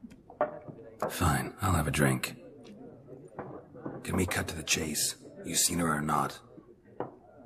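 A man speaks calmly in a low, gravelly voice.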